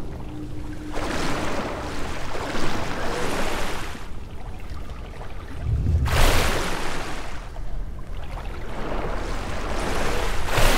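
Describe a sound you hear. Water splashes and churns as a swimmer moves through it.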